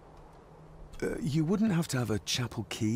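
A young man asks a question calmly, close by.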